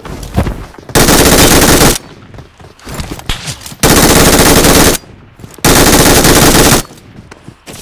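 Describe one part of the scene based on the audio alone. A game's gunfire blasts in loud, long bursts through a tablet speaker.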